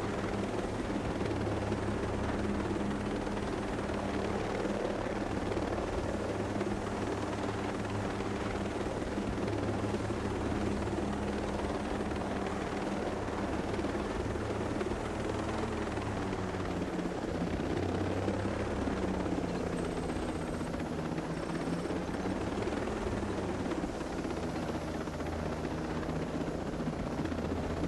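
A helicopter's rotor thumps and its engine drones steadily throughout.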